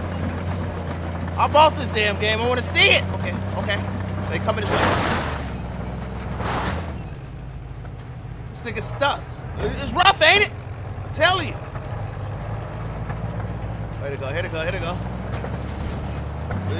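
Tyres roll over a dirt road.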